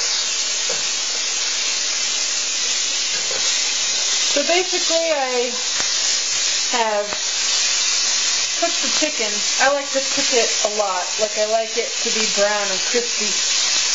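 Tongs scrape and tap against a frying pan.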